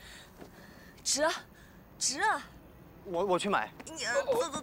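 A young woman shouts excitedly nearby.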